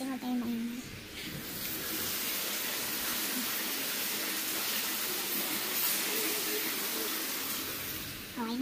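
Hail pours down heavily outdoors with a loud steady hiss.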